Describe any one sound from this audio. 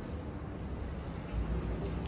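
A woman talks quietly at a distance in a large echoing room.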